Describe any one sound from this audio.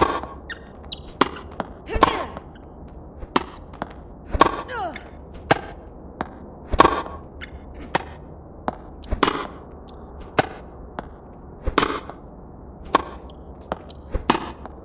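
Tennis rackets strike a ball with sharp pops, back and forth.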